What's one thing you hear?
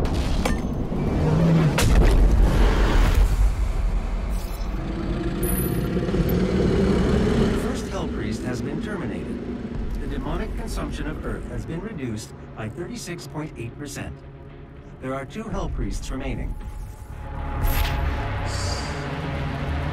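A deep, low rumble drones throughout.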